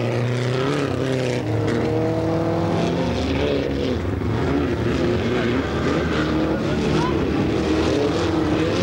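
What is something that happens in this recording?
Several car engines roar and whine around a track in the distance.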